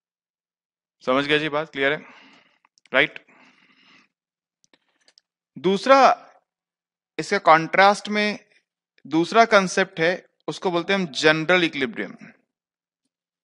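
A man speaks calmly and clearly into a headset microphone, in short phrases with pauses.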